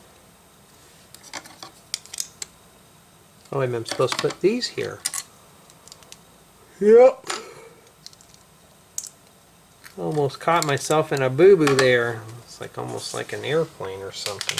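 Plastic toy bricks click and rattle as hands handle them.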